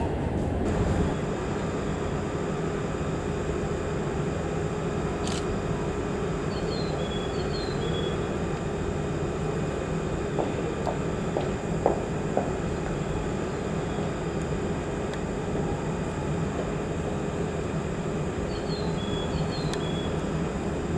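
A stopped train hums steadily with a droning engine.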